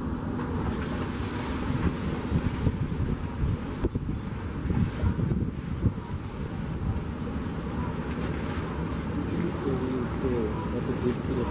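Water splashes and rushes along a ferry's bow.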